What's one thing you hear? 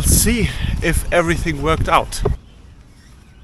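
A young man speaks close to the microphone with animation.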